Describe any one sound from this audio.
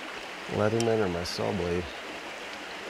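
A man speaks briefly and calmly, close by.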